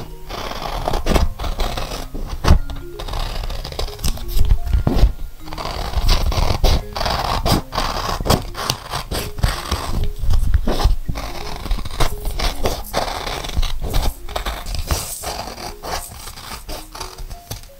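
Plastic-coated paper crinkles and rustles as it is handled.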